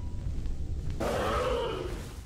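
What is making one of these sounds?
A large creature growls and roars.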